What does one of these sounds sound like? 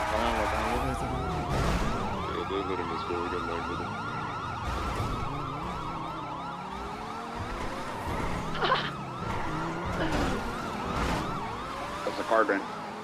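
Police sirens wail nearby.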